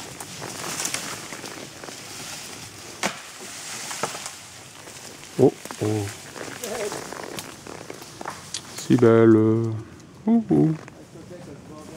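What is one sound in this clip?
Leaves rustle against a passing horse.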